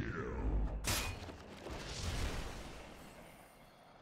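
Deep rumbling effects boom and fade.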